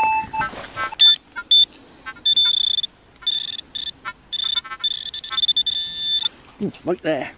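A handheld pinpointer beeps and whines steadily in bursts.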